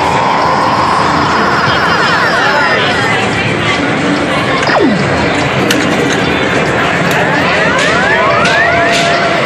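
A noisy arcade hums with the steady din of many machines.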